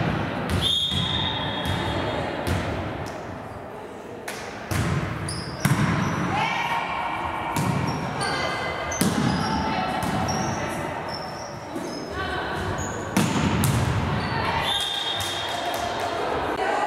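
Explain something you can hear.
Young women shout and call out during play.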